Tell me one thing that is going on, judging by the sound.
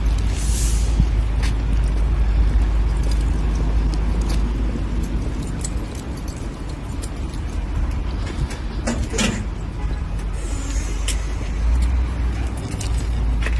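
Footsteps scuff on pavement outdoors.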